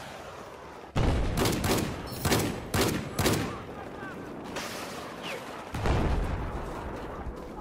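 Gunshots fire in loud, rapid bursts.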